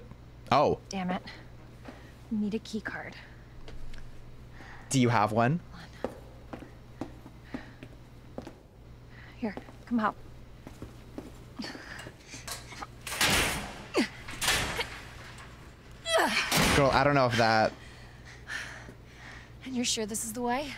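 A young woman speaks.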